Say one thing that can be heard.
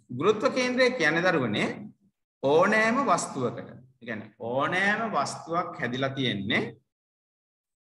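A man speaks calmly through an online call microphone, pausing now and then.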